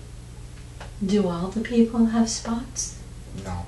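An elderly woman mumbles briefly in her sleep, close by.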